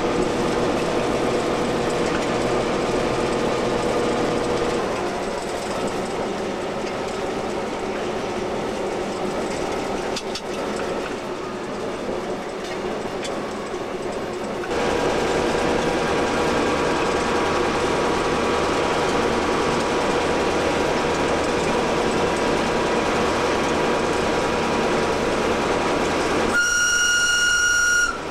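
Wheels rumble and clatter over old rails.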